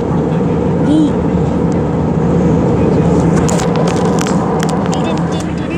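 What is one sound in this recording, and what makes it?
Jet engines roar steadily in a loud, droning hum.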